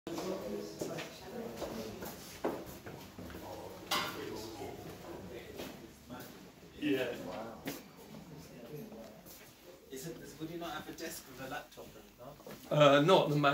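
Several men chat nearby.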